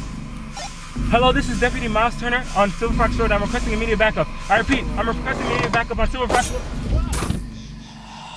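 A young man speaks closely into a handheld radio.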